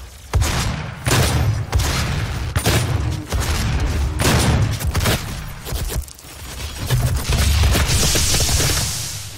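Shotgun blasts boom in quick succession.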